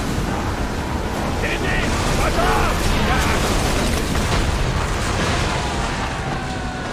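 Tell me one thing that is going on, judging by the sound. Rough sea waves crash and rush steadily against a ship's hull.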